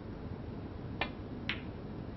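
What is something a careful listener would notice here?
A snooker cue taps a ball sharply.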